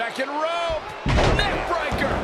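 A body slams down hard onto a wrestling mat.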